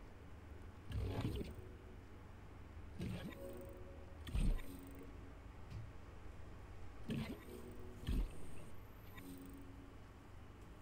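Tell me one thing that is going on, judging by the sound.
Soft electronic whooshes and chimes sound in short bursts.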